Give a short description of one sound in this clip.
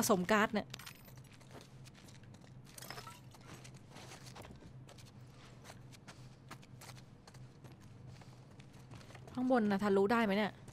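Footsteps tread slowly across a wooden floor.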